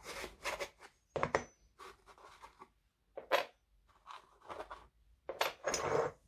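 Small metal parts clink softly as they are set down on a hard surface.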